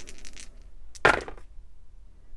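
Dice clatter into a tray and roll to a stop.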